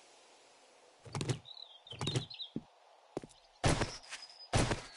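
Heavy wooden thuds and cracks sound as boards give way.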